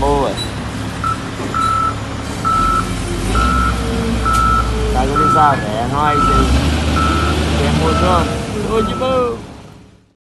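A loader's reversing alarm beeps steadily.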